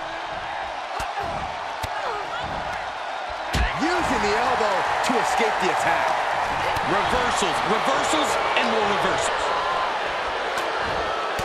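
Heavy blows thud as two wrestlers strike each other.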